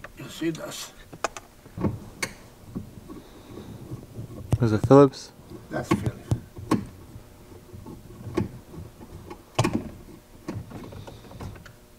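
Plastic trim creaks and clicks as it is pulled loose by hand.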